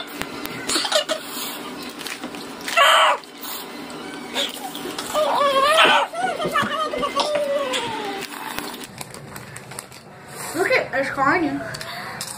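A crisp packet rustles.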